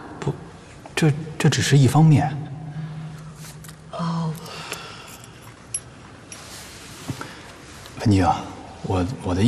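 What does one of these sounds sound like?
A young man speaks calmly and hesitantly nearby.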